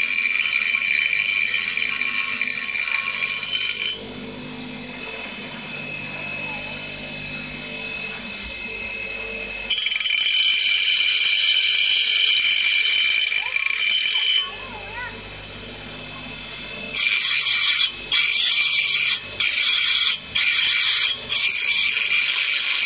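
A bench grinder grinds metal with a loud, harsh hiss in several bursts.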